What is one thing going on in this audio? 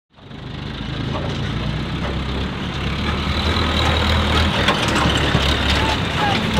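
A diesel engine rumbles steadily nearby.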